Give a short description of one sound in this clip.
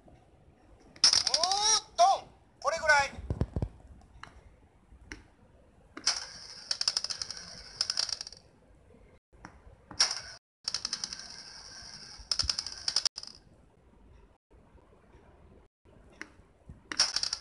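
A handheld game gives off bursts of bright, tinny sound effects through a small speaker.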